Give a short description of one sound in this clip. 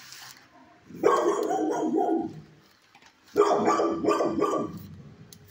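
A dog barks loudly close by.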